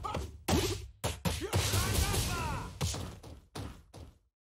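Fire bursts with a whoosh.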